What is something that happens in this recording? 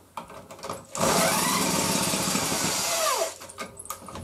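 A power tool whirs loudly, then winds down.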